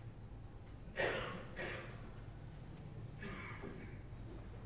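A man laughs softly nearby.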